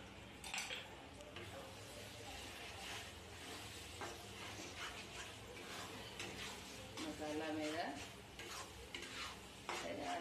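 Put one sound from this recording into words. A metal spatula scrapes and clinks against a metal pan.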